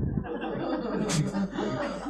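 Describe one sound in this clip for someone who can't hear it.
A man chuckles nearby.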